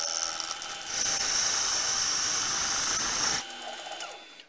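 A cutting tool scrapes and squeals against spinning metal.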